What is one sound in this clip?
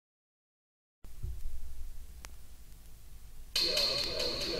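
A record turntable's needle hisses and crackles on a spinning record.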